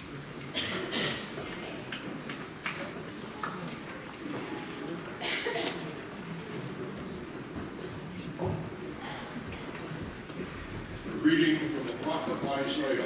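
An audience murmurs quietly in a large echoing hall.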